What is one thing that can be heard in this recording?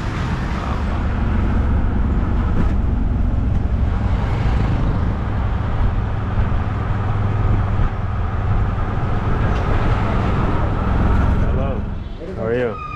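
A three-wheeled taxi engine rumbles steadily while driving.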